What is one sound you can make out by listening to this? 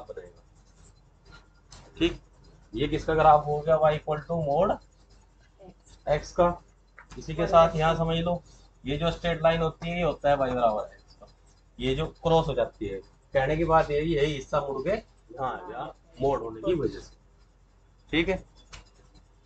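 A man speaks clearly and steadily close by, explaining.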